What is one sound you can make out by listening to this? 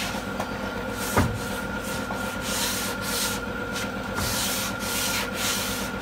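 A hand sander rubs against a car's body panel in short strokes.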